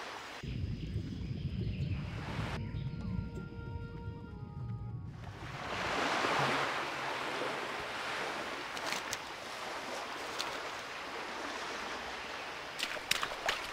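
Water splashes softly as a swimmer paddles.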